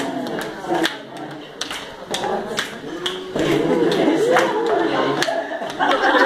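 Onlookers clap their hands in rhythm.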